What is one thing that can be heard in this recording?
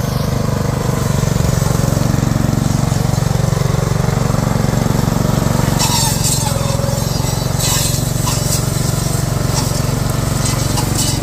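A small engine chugs steadily close by.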